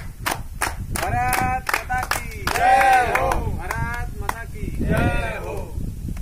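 A group of young men shout a chant in unison.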